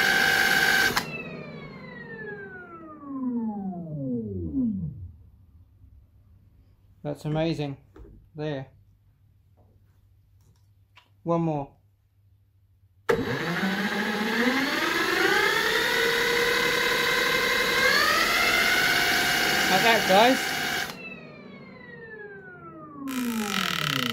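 A spinning plastic drum hums as it slowly winds down to a stop.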